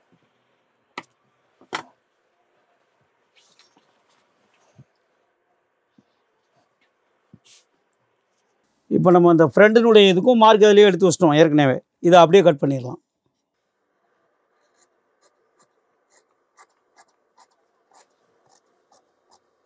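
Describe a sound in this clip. Scissors snip through fabric in short, regular cuts.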